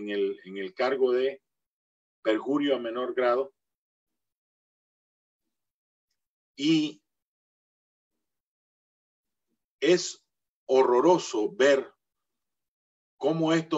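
A middle-aged man speaks calmly in short bursts with pauses, heard through an online call.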